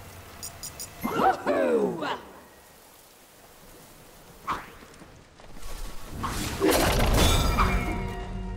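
Fantasy game spells burst and whoosh in quick flurries.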